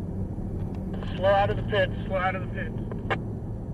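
A man speaks briefly with animation inside the car.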